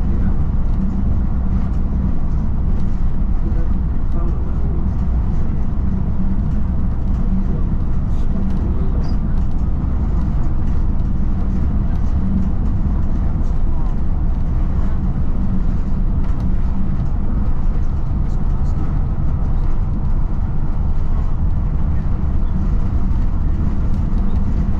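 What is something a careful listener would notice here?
A vehicle's engine rumbles steadily as it drives along.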